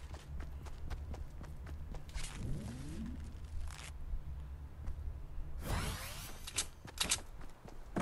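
Footsteps thud steadily on wooden floor and grass.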